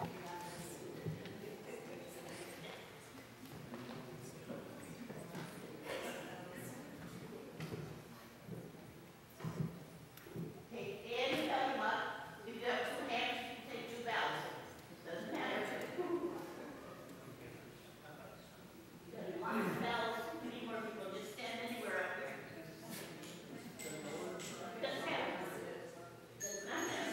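An elderly woman speaks calmly through a microphone in an echoing hall.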